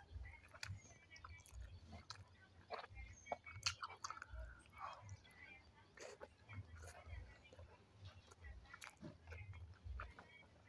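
Soft food squishes between fingers close to a microphone.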